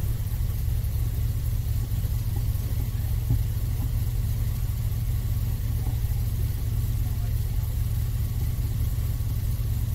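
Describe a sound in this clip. An airboat's engine and propeller roar steadily.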